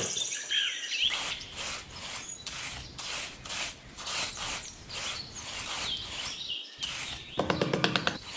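A small trowel scrapes through sand.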